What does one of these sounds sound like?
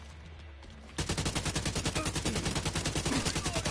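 A gun fires in a rapid, steady burst.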